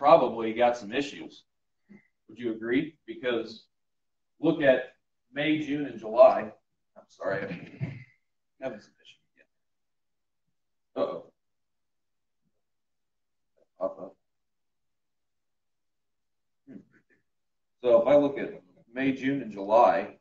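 A man speaks calmly to an audience, with pauses between phrases.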